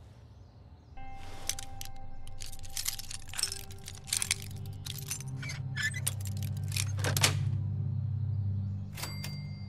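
Metal pins scrape and click inside a lock.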